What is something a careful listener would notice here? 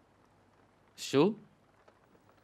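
A young man speaks a short word, close by.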